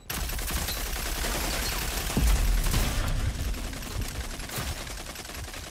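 Automatic rifle gunfire rattles in a video game.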